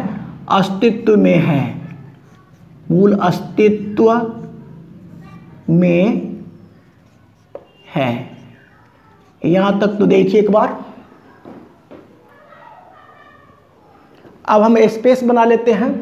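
A man explains calmly and clearly, close by, in short phrases with pauses.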